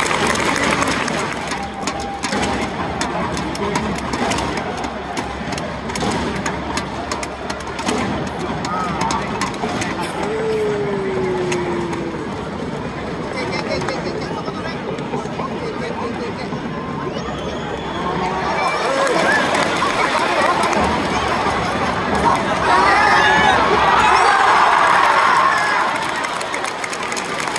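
A large stadium crowd murmurs and chatters throughout, heard from the stands outdoors.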